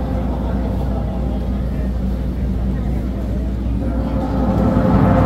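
A group of drummers pounds large drums in a fast, loud rhythm outdoors.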